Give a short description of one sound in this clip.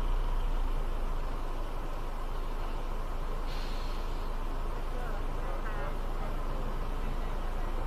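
Tyres roll over a concrete road.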